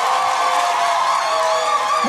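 Women in a crowd scream excitedly.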